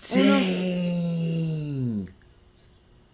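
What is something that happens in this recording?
A young man exclaims loudly close by, his voice falling in pitch.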